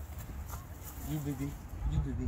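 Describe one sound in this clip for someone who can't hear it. A toddler babbles nearby.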